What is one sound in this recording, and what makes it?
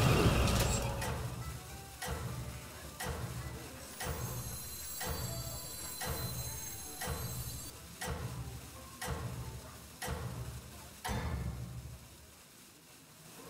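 Heavy blows thud one after another at a steady pace.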